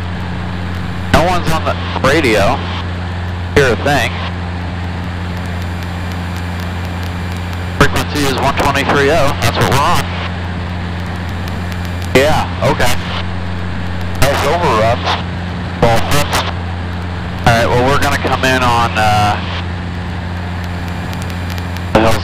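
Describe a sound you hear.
An aircraft engine drones steadily inside a small cabin.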